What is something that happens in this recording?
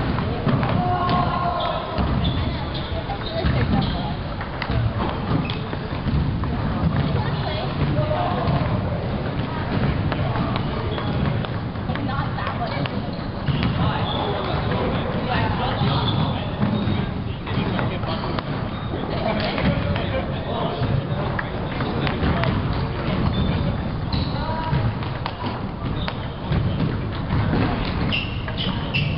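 A table tennis ball clicks back and forth on paddles and a table.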